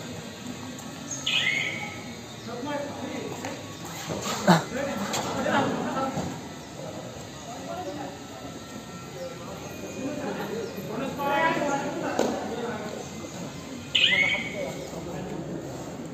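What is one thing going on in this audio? Young men shout and call out to each other during play.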